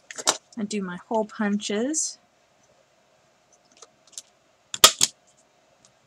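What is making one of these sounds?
A small metal punch clamps down on paper with a sharp click.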